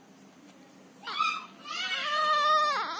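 A baby starts to cry loudly close by.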